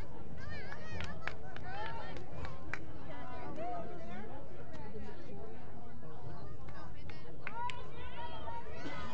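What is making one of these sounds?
Lacrosse sticks clack together.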